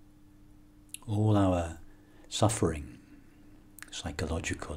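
A middle-aged man speaks calmly and slowly close to a microphone.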